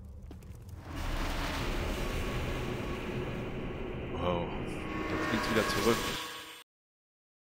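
A loud magical whoosh swells and rushes.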